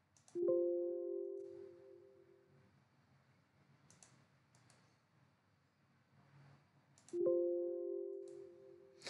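A computer alert chimes twice.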